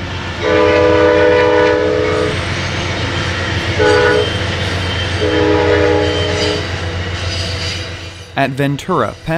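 A passing train rumbles steadily.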